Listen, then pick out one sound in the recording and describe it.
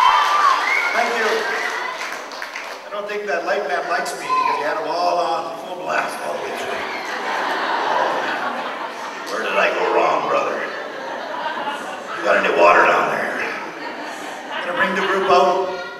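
A middle-aged man speaks with animation into a microphone over loudspeakers.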